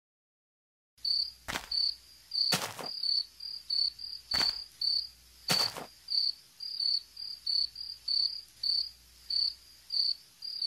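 Footsteps thud on grass at a regular pace.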